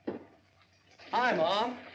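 A young man speaks cheerfully.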